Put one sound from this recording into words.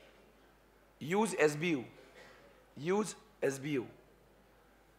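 A young man speaks calmly into a close microphone, in short phrases.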